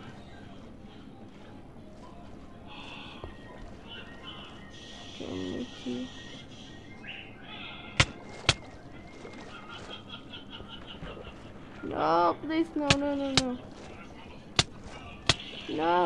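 Water splashes and bubbles as a game character swims.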